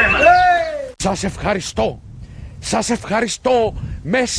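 A man shouts in short bursts.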